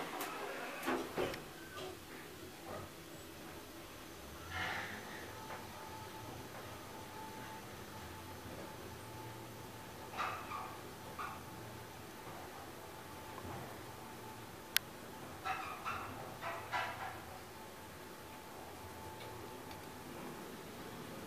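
An elevator car hums steadily as it moves between floors.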